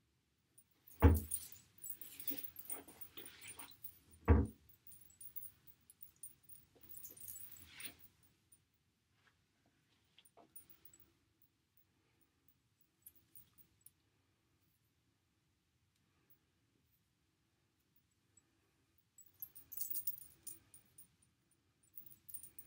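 Hands rustle and brush through hair close by.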